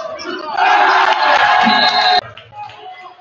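A crowd cheers in a large echoing gym.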